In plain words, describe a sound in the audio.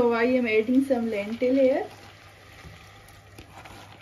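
Dry lentils pour and patter into a metal pot.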